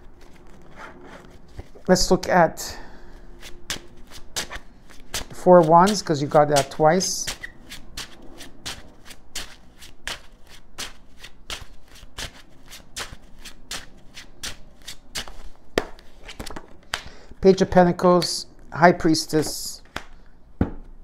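Cards shuffle with quick, crisp taps and flicks.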